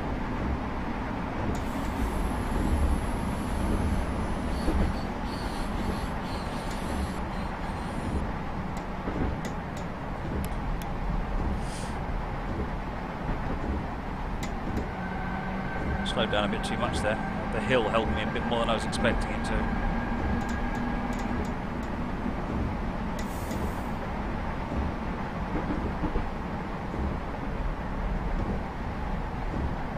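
An electric commuter train runs along the track.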